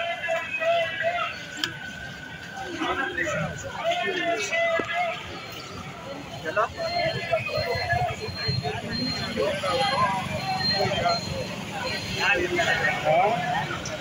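A crowd of men and women talks and murmurs outdoors nearby.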